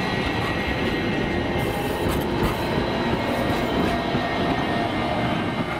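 Metal wheels squeal on the rails.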